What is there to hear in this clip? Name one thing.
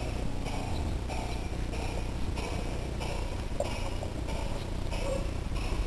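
A small model train rolls along its track with a steady, rhythmic clatter.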